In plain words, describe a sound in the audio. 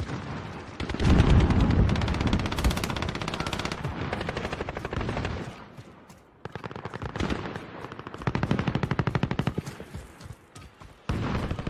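Rapid gunfire rattles in close bursts.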